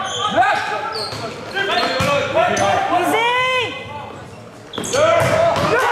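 A volleyball is struck hard in a large echoing gym.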